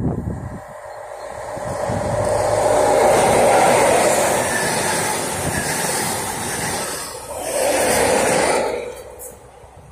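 A train approaches, roars past close by and quickly fades away.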